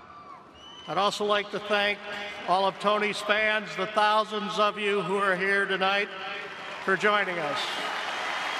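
An elderly man speaks slowly and with feeling through a microphone, echoing in a large open space.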